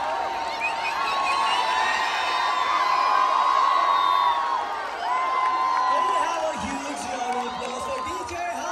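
A large crowd chatters and calls out loudly in the open air.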